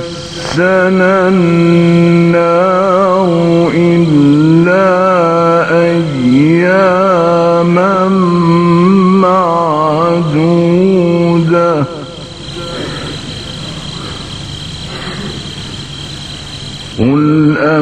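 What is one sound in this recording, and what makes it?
An elderly man chants in a long, wavering melodic voice through a microphone, in a reverberant hall.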